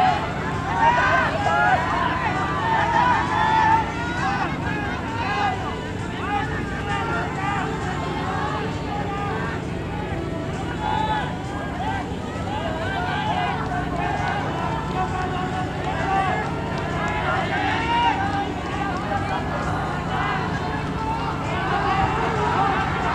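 A crowd of spectators shouts and cheers.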